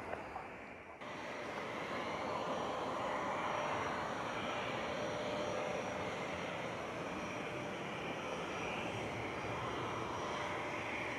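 A jet airliner's engines roar steadily as it approaches overhead.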